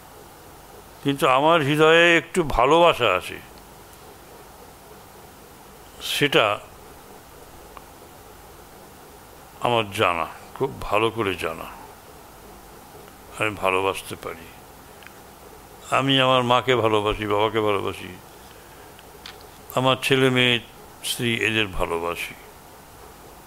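An older man reads aloud calmly into a microphone, in short phrases with pauses.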